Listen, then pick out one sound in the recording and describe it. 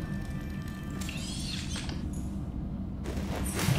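A metal hatch hisses open.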